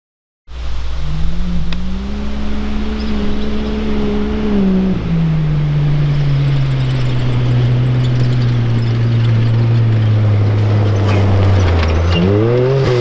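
An off-road buggy's engine drones as it speeds closer.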